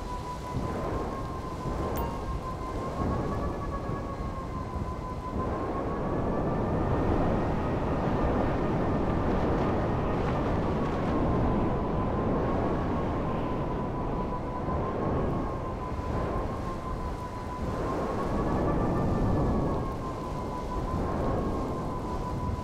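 Wind rushes past in a snowstorm.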